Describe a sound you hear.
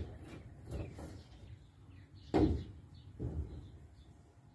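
A wooden board knocks against a hollow wall.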